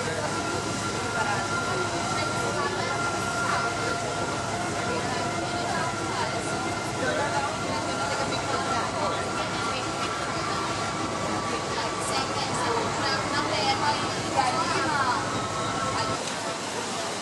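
An electric towing locomotive hums as it rolls along rails.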